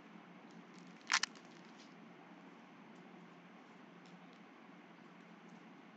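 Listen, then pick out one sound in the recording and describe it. Plastic trading card sleeves rustle and crinkle as hands handle them.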